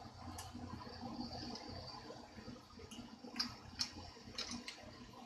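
Small metal clicks come from a guitar's tuning pegs being handled.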